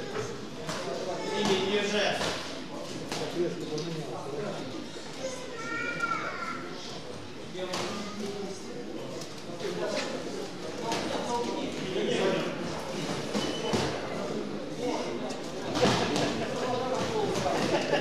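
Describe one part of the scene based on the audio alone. A crowd of spectators chatters and shouts in an echoing hall.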